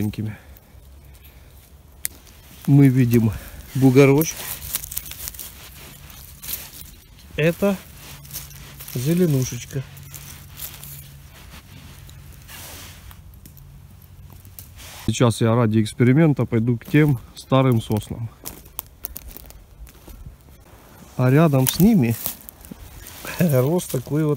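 Footsteps crunch on dry needles and twigs.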